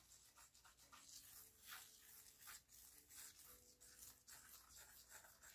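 A fingertip rubs and scratches softly through fine powder.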